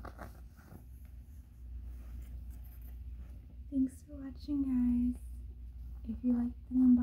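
Fabric rustles as a garment is shaken out.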